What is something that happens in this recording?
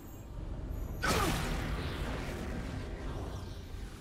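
A loud magical blast bursts and rumbles.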